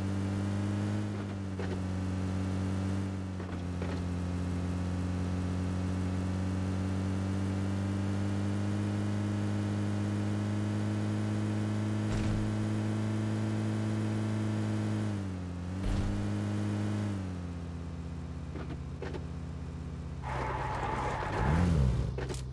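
A car engine drones steadily, rising and dropping in pitch as it shifts gears.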